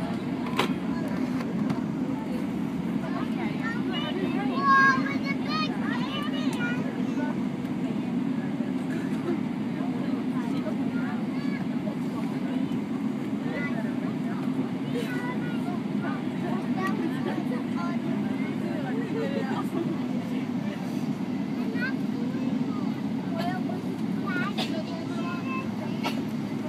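An airliner's wheels rumble over the runway.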